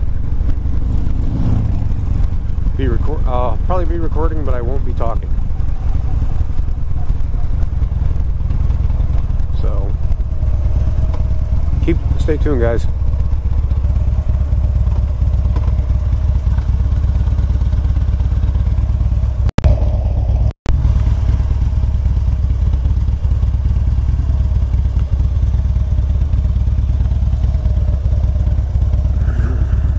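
A motorcycle engine rumbles steadily up close.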